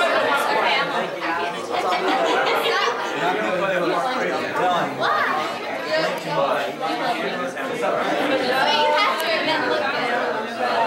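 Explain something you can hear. A crowd of young men and women chatter loudly all around.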